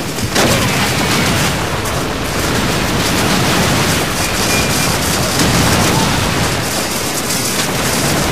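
Gunfire crackles steadily in the distance.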